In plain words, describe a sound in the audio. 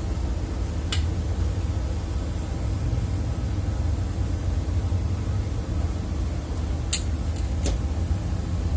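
A metal bowl clinks sharply against a metal tray.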